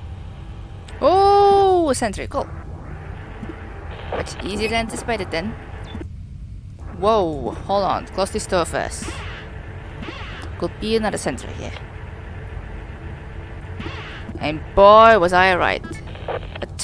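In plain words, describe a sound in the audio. Electronic tones chirp and warble in short bursts.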